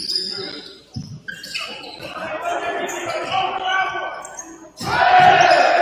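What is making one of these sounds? A basketball bounces on a hardwood floor in a large echoing gym.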